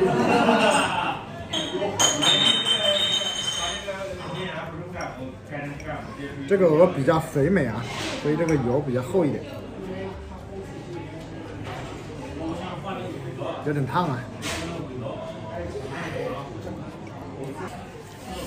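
A man chews and smacks his lips.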